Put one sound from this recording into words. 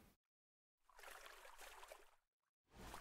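A paddle dips and splashes softly in water.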